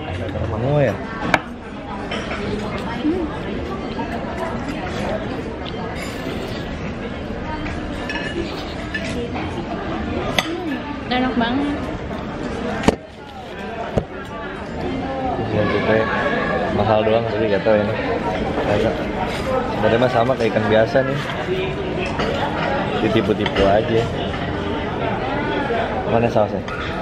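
Cutlery clinks on a plate.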